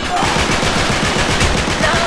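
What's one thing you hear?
Gunshots rattle in quick bursts.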